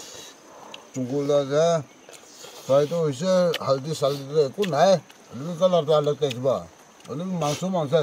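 A man speaks loudly and animatedly close by.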